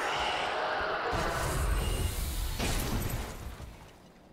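Metal weapons clash and strike armour.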